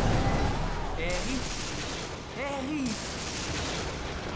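A boy calls out anxiously.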